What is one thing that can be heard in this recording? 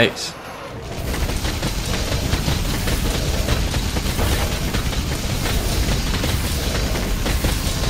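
Guns fire rapidly in continuous bursts.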